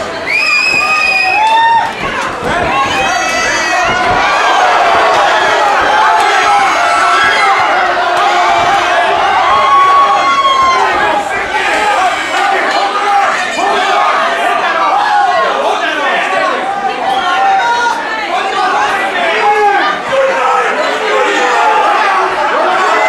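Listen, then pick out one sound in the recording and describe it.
A large crowd shouts and cheers loudly in an echoing hall.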